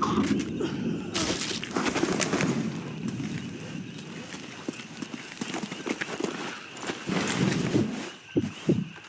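Footsteps crunch softly on dirt and grass.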